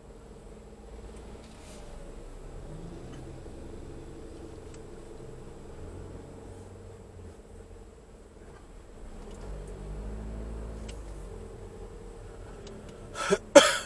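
A car engine hums as the car drives slowly in traffic, heard from inside the car.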